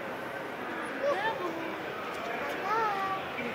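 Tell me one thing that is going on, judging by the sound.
A young child talks excitedly close by.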